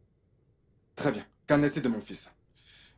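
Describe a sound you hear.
An older man replies calmly and closely.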